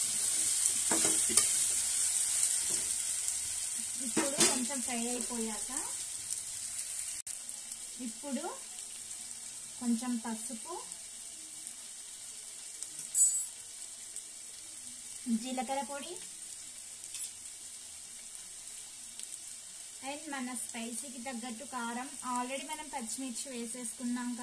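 Food sizzles steadily in a hot pot, slowly quieting.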